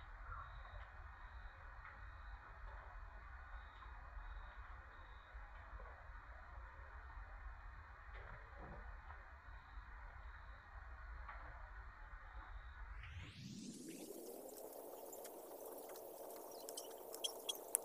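Thin wire rustles and clicks faintly as fingers twist it.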